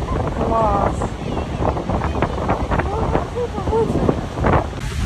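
A young boy shouts excitedly close by.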